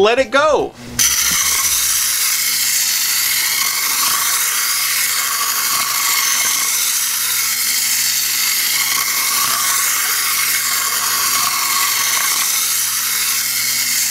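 A toy car whirs as it rolls across a play mat.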